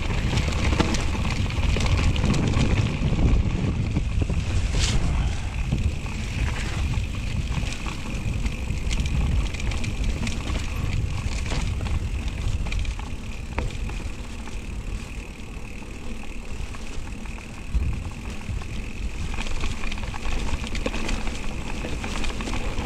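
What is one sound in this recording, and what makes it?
A bicycle freewheel ticks steadily.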